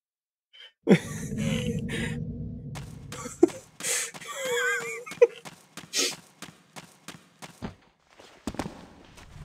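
Footsteps run quickly across a stone floor.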